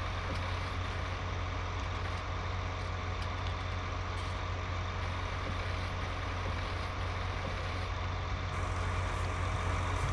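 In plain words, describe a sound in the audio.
A heavy machine's engine hums steadily.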